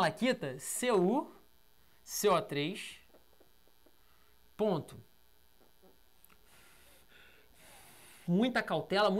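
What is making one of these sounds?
A man speaks with animation in short bursts, close to the microphone.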